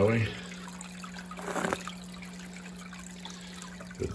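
Air bubbles softly in water.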